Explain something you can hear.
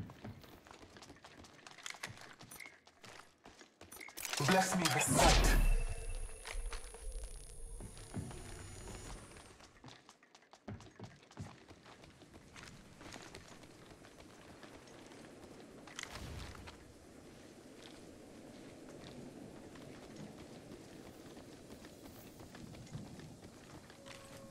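Footsteps patter steadily as a game character runs.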